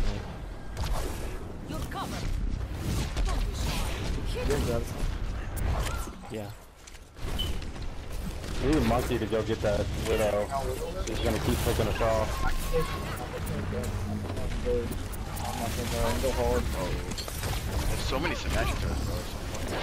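A futuristic energy gun fires in crackling, buzzing bursts.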